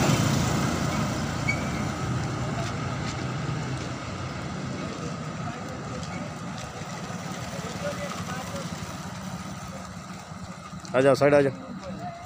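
A motorcycle drives past.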